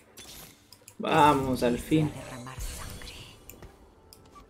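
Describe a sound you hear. A magic spell bursts with a loud, ringing whoosh.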